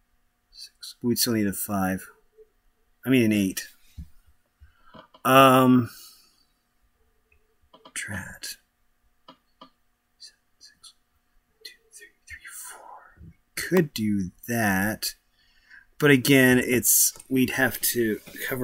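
A man talks casually into a nearby microphone, in bursts with pauses.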